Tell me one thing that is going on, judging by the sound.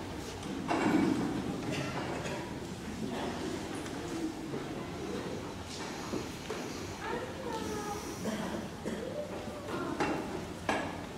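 A man speaks into a microphone in a large echoing hall.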